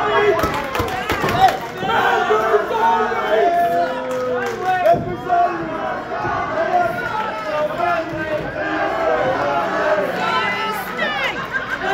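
A crowd of spectators chatters and calls out nearby in a large room.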